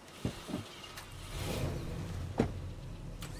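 A vehicle engine starts and rumbles steadily.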